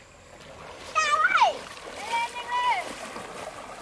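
A young girl shouts nearby.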